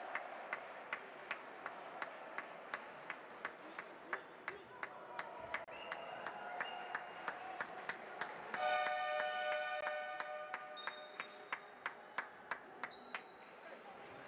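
A basketball bounces steadily on a wooden court.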